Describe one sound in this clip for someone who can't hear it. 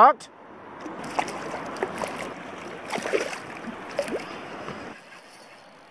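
A fish splashes in water beside a kayak.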